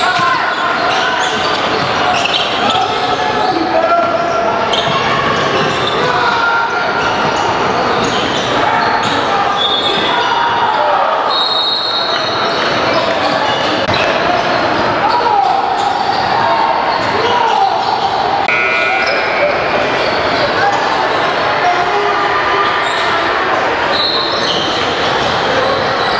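A crowd of players and spectators chatter and call out in a large echoing hall.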